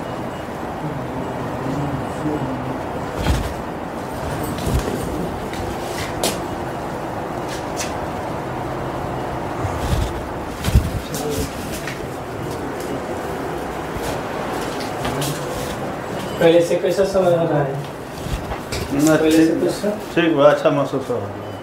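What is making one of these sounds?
A man talks calmly close by, through a small microphone.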